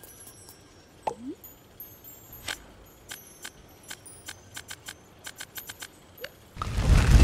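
Soft clicks tick quickly as menu options are scrolled through.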